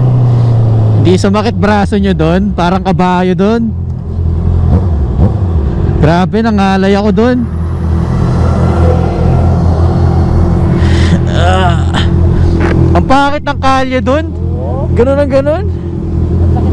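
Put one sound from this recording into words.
Motorcycle engines rev in sharp, rising bursts nearby.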